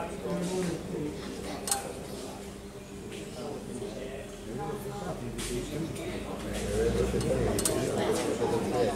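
Men talk casually in a large echoing hall.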